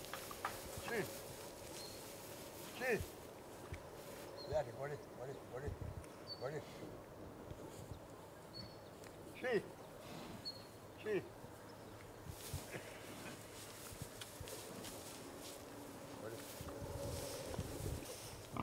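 Pigs grunt softly close by.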